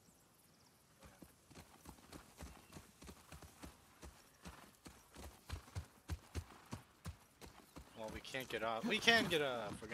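A horse's hooves clop steadily on soft ground.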